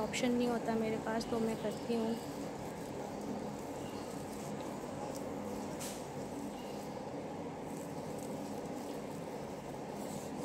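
A woman rubs a gritty scrub over her face.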